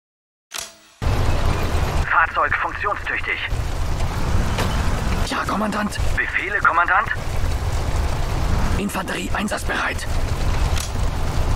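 A battle rumbles with low booms and gunfire.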